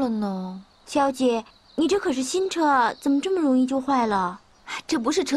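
A second young woman speaks with animation, close by.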